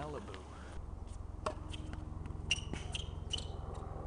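A tennis racket strikes a ball.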